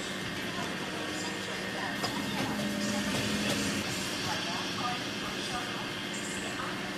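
A train engine idles with a steady hum.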